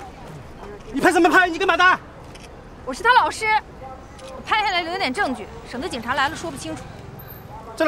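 A young woman speaks firmly nearby.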